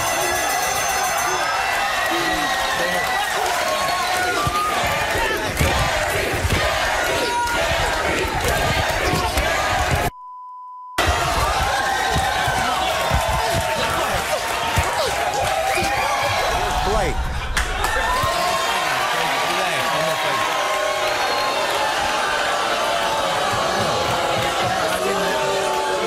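A large crowd cheers, shouts and chants loudly.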